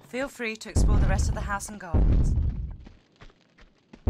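Footsteps patter quickly on a stone floor.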